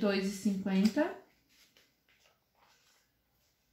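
A glossy paper page rustles as it turns.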